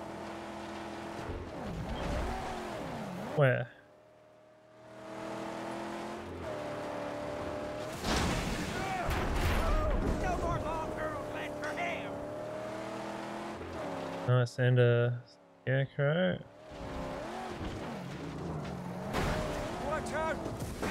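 A car engine roars and revs as the car speeds over loose ground.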